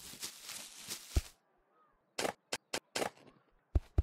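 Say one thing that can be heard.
A shovel digs into soil with short scraping thuds.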